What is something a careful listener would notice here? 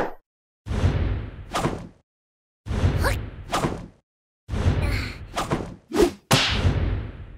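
A body thumps again and again against a metal lid, which rings out after each blow.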